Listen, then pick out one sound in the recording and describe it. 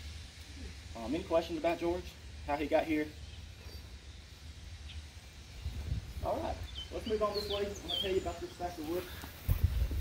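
A man speaks calmly to a small group outdoors.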